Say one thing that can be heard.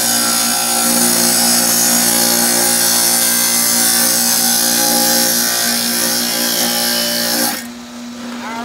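A table saw whines loudly as it cuts wood.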